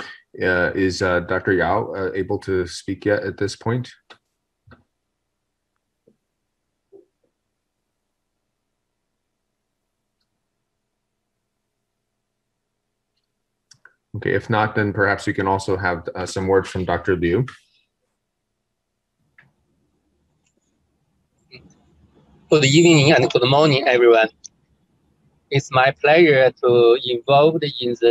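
A middle-aged man speaks calmly through an online call, pausing between phrases.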